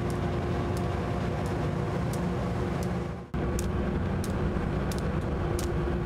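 Boots step on a ship's deck.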